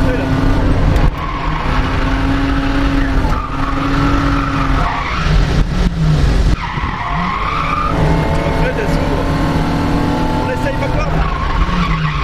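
Tyres screech on tarmac as a car slides.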